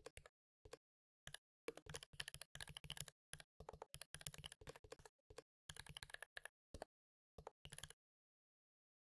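Keyboard keys click rapidly with typing.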